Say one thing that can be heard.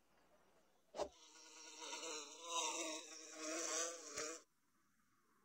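Cartoon bees buzz.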